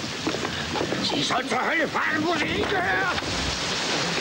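A man cries out and groans while struggling.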